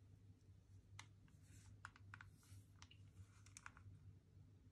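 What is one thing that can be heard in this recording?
Hands handle a small plastic game console, its casing clicking and rustling.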